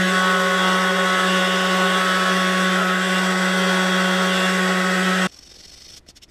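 A power sander buzzes loudly and steadily, then stops.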